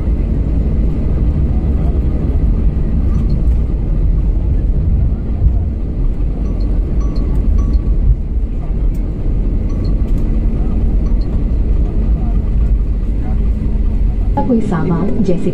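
A jet engine rumbles steadily as an airliner rolls along a runway.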